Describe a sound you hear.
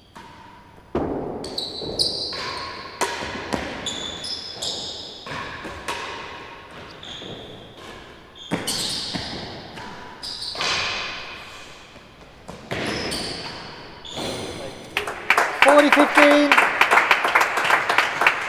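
A ball is struck by rackets and thuds off walls in a large echoing hall.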